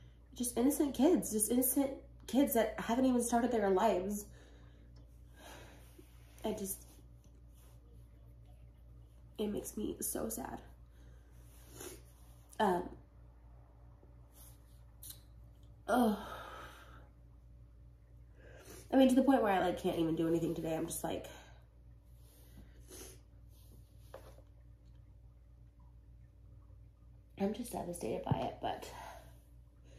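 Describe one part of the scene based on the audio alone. A woman speaks emotionally and tearfully, close by, with long pauses.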